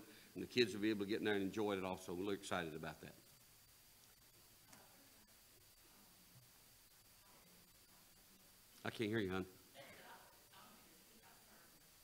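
An elderly man speaks calmly through a microphone, with pauses.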